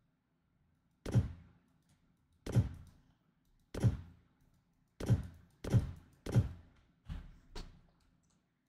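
Short soft thuds sound as items snap into place.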